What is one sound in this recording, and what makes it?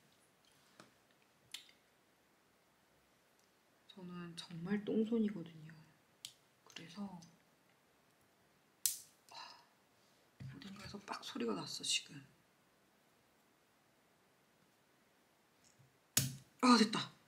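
Small plastic parts click as they are handled.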